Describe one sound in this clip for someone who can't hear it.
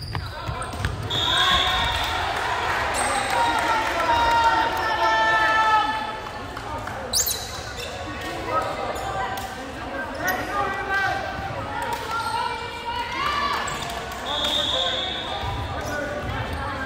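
Young women players call out and chatter on the court.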